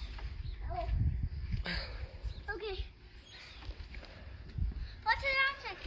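A trampoline mat thumps softly as a child bounces on it.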